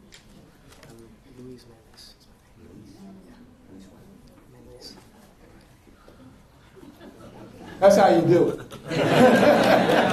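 A man speaks through a microphone, quietly at first and then loudly.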